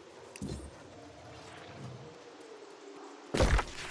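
Footsteps tread on a dirt path.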